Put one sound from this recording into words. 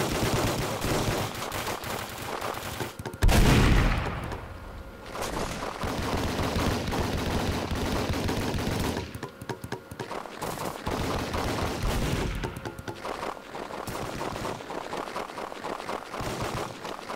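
Gunfire bursts out in rapid volleys.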